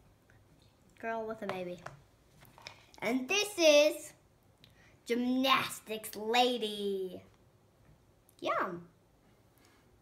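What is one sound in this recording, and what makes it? A young girl talks with excitement close by.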